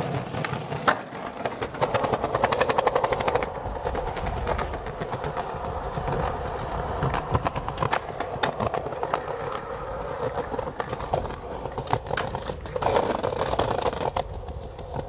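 A skateboard clacks and snaps as it lands tricks.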